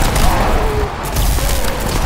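A heavy gun fires in loud, crackling electric bursts.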